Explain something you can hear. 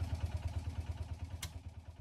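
A knob clicks as it is turned.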